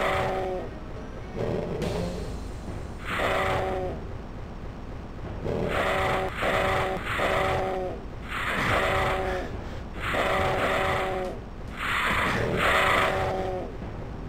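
Flying flaming skulls screech loudly in short repeated bursts.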